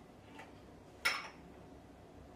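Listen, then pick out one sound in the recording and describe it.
A porcelain lid clinks against a cup.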